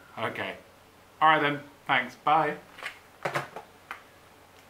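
A man speaks into a telephone with animation, close by.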